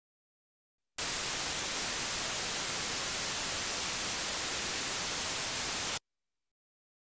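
A steady, harsh hiss of static plays through a speaker, then stops abruptly.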